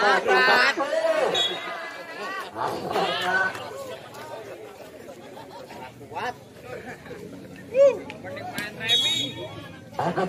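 Young men call out to each other during a game.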